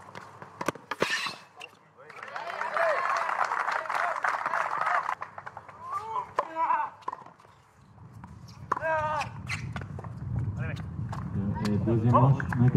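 A tennis ball is struck hard with a racket, with sharp pops.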